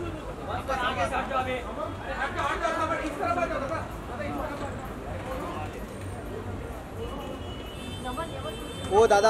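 Men shout and call out nearby outdoors.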